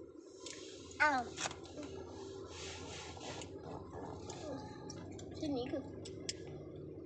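A small girl speaks in a high voice close by.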